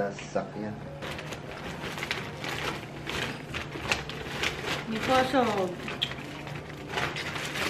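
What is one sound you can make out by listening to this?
A man rustles a plastic bag.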